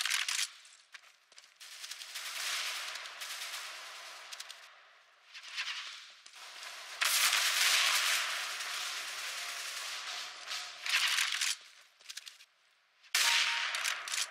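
A sniper rifle fires loud, sharp shots.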